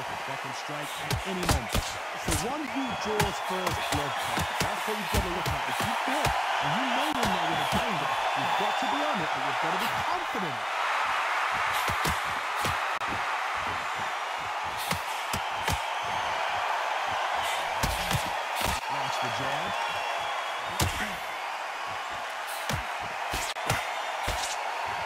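Punches thud sharply against bodies, again and again.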